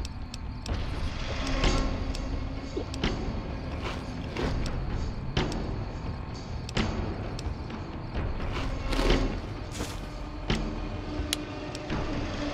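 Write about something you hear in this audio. Short electronic clicks sound again and again.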